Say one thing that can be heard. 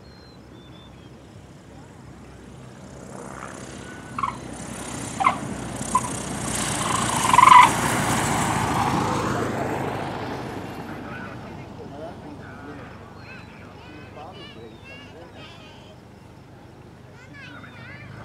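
A small propeller plane's engine roars as the plane takes off, growing louder as it passes close by and then fading into the distance.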